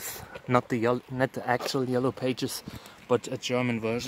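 Gravel crunches as a cactus is laid on the ground.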